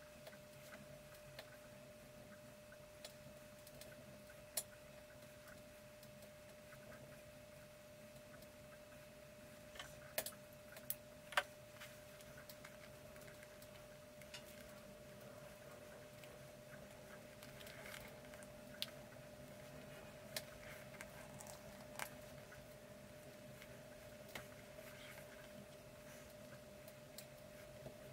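Small clicks and taps come from hands working on a plastic part.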